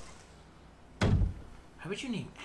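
A heavy wooden door thuds shut.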